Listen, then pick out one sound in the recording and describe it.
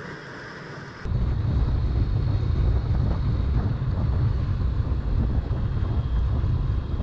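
Wind roars past a moving motorcycle.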